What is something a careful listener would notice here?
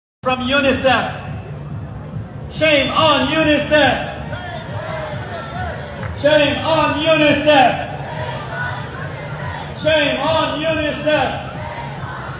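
A crowd of men and women chants loudly in unison, in short repeated bursts outdoors.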